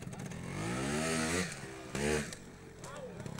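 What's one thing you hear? A motorcycle engine revs up sharply in bursts.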